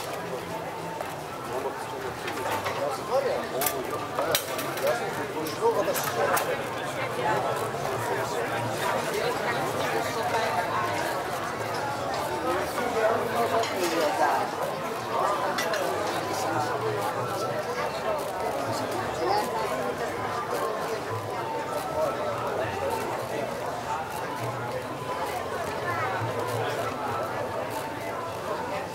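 Footsteps tap on paving stones nearby.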